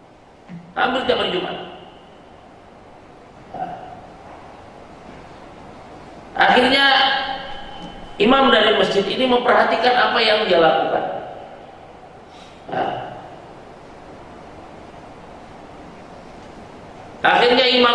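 A man speaks calmly into a microphone in an echoing room, with pauses between phrases.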